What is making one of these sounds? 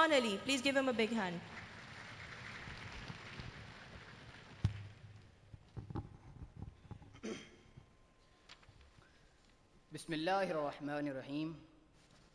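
A man speaks through a microphone and loudspeakers in a large echoing hall.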